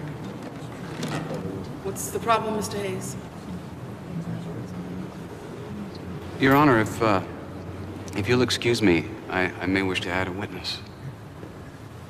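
A man speaks firmly and clearly in a large, echoing room.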